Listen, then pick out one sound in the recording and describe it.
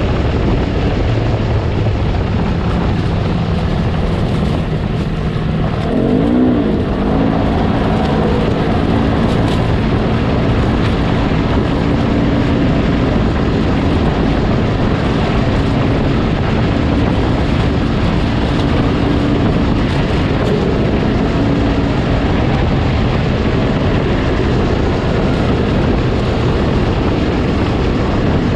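Tyres rumble over bumpy dirt.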